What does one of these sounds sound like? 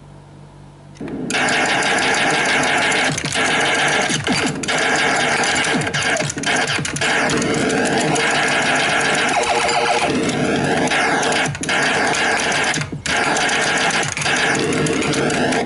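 An arcade game blares loud electronic zaps, explosions and sweeping tones.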